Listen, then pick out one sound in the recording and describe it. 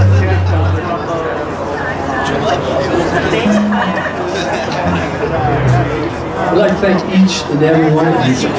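An electric guitar plays a melody.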